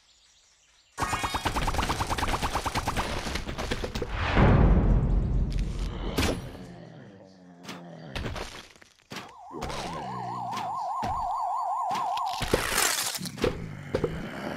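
Cartoonish popping and whooshing game sounds play as a burst of peas is fired.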